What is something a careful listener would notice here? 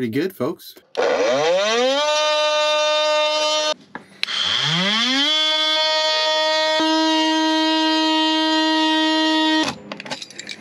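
An oscillating power tool whines loudly as it spins up and cuts.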